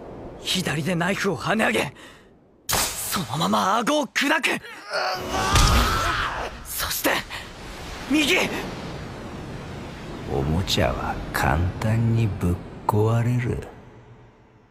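A man speaks tensely and forcefully.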